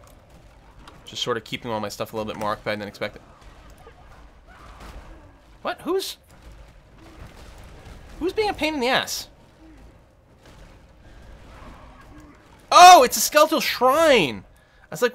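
Fiery magic spells burst with loud blasts.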